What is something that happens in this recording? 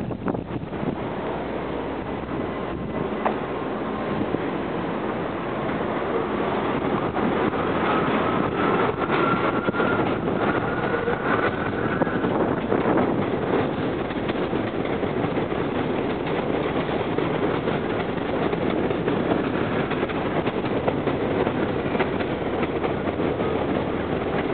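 A train rumbles and clatters along elevated tracks.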